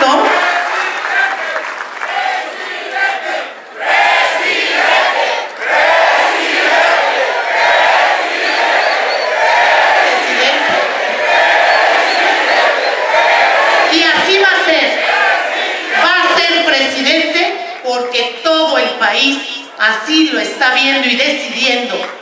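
A woman speaks with animation into a microphone, heard over loudspeakers in a large echoing hall.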